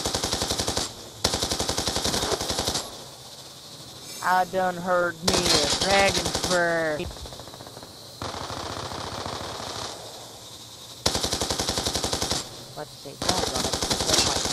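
A rapid-fire machine gun fires in long bursts.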